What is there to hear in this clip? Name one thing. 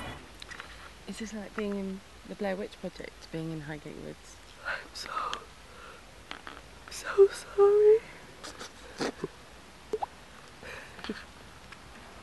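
A man talks softly close to the microphone.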